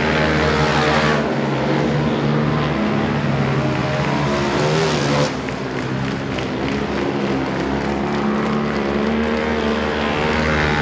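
Speedway motorcycle engines roar loudly as the bikes race around the track.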